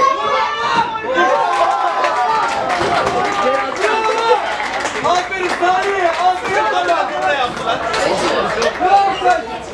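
Spectators nearby talk and cheer.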